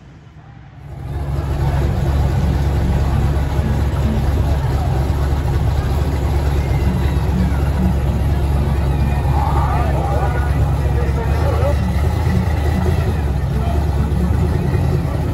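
Race car engines rumble loudly and rev up close by.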